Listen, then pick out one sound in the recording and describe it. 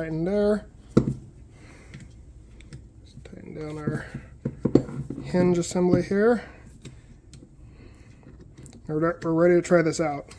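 Metal parts of a hand tool clack and click together.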